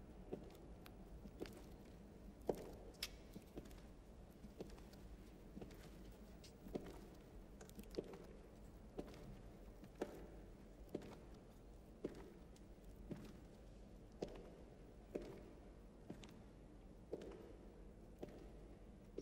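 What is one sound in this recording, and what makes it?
Footsteps echo slowly on a hard floor in a large hall.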